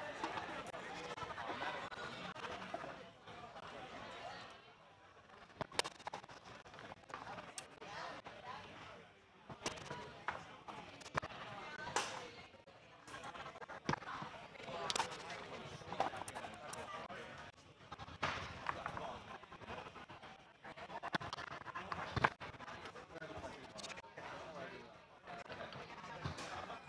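Foosball rods rattle and clack as players spin them.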